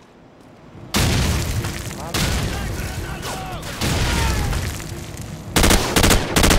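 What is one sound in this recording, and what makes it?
Explosions boom and rumble nearby.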